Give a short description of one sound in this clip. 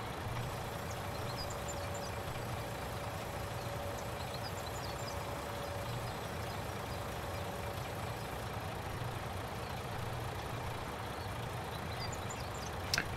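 A truck engine idles with a steady low rumble.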